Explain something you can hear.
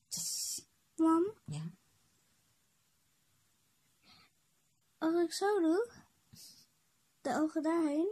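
A young child talks and sings close by.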